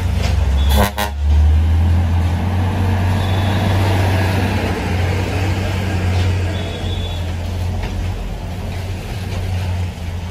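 Heavy truck diesel engines idle with a deep, steady rumble.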